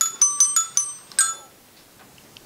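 A music box plays a few bright, ringing metal chimes.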